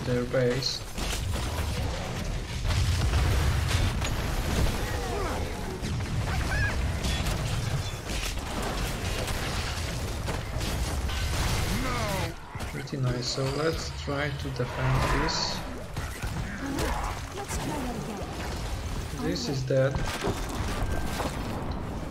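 Game spells whoosh and explode in quick bursts.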